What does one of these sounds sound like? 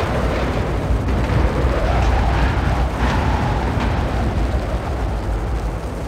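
A helicopter's rotor thumps.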